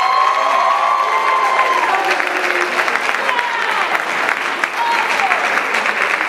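A young woman sings high through a microphone in a large hall.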